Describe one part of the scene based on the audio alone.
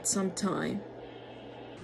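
A young woman speaks briefly close to the microphone.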